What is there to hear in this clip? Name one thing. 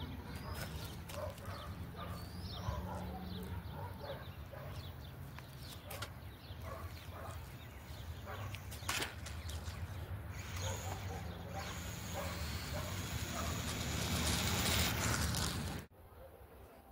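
A small model plane's electric motor whirs overhead and grows louder as it comes in to land.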